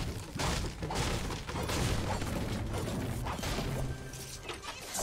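A pickaxe strikes wood with repeated knocks.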